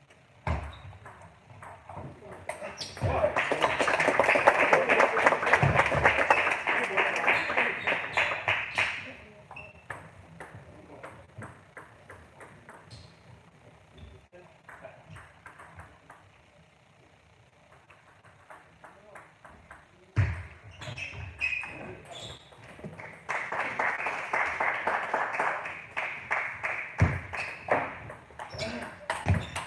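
A table tennis ball clicks quickly back and forth off paddles and a table in a large echoing hall.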